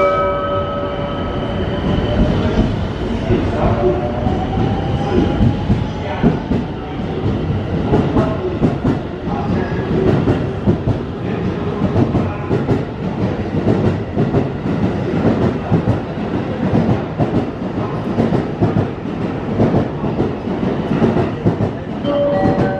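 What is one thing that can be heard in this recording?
Train wheels rumble and clatter on the rails, getting faster.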